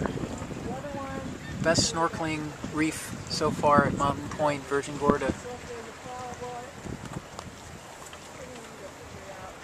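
Water washes against the hull of a moving boat.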